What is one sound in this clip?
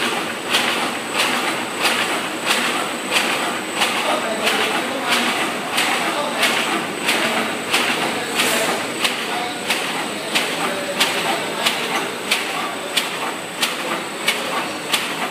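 A machine whirs and rattles steadily.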